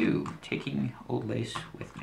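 A plastic game piece taps on a tabletop.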